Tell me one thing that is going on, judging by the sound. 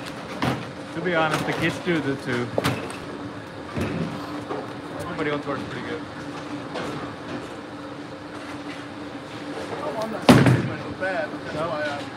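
A man talks nearby in a large echoing hall.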